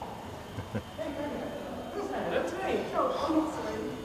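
A woman talks and laughs cheerfully nearby.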